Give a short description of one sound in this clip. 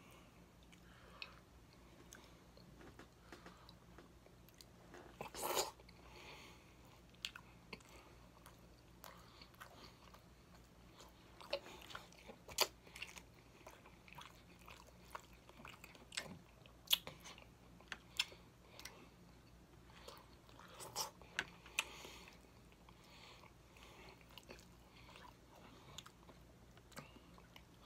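Crispy food crunches and crackles as fingers tear it apart.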